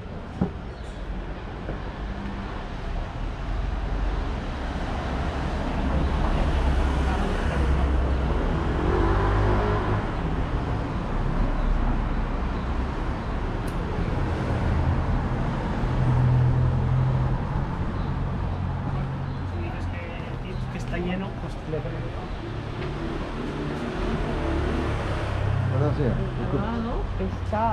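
Street noise hums steadily outdoors.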